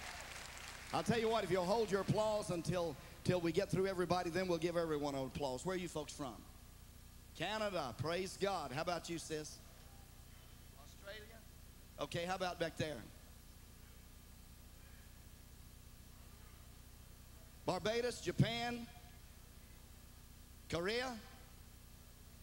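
An elderly man preaches with animation through a microphone in a large echoing hall.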